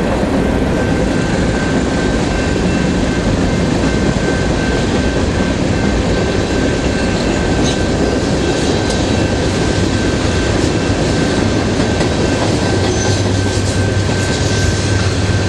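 Train wheels clack over the rails.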